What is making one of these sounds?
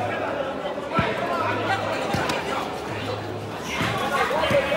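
A ball thuds as a player kicks it.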